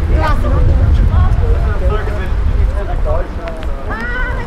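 Footsteps patter on wet paving.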